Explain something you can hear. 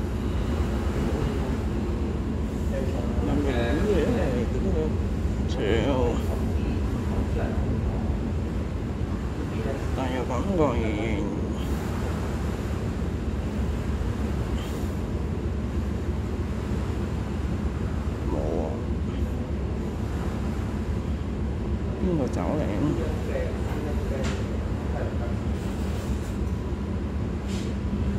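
Harbour water laps gently against a seawall.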